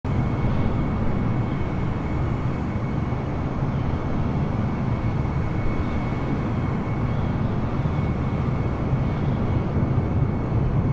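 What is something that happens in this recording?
A jet airliner's engines roar steadily with a thin high whine.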